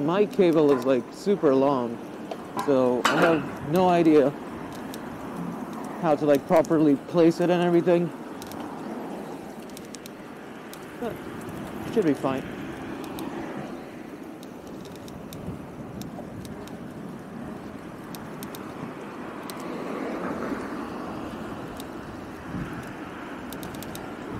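Bicycle tyres hum on pavement.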